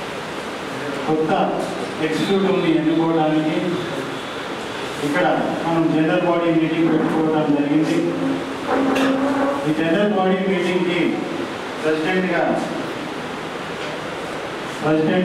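A man speaks steadily into a microphone, heard through a loudspeaker in an echoing room.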